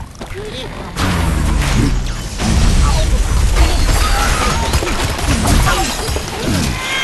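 Wooden blocks crash, splinter and tumble down with loud thuds.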